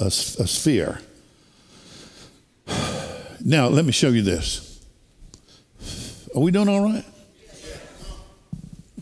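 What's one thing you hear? An older man speaks with animation into a microphone.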